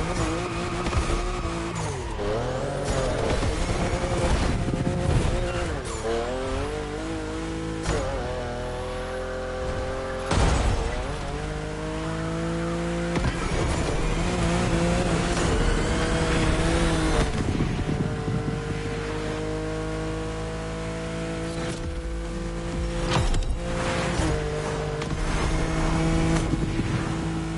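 Exhaust pops and crackles in sharp bursts.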